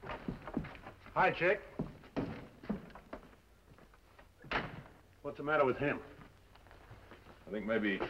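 An older man speaks gruffly.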